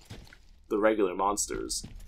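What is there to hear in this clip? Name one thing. Footsteps rustle through dry leaves.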